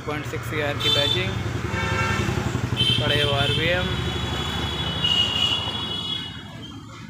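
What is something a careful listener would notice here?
A vehicle engine idles close by.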